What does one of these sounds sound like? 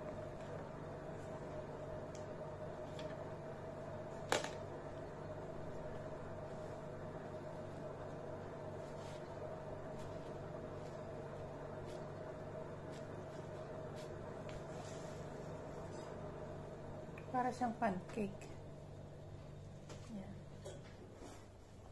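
Gloved hands pat and press soft dough.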